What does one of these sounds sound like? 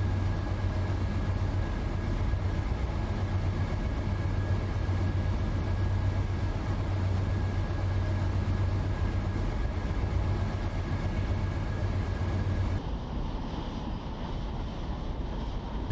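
Train wheels rumble and clatter along the rails.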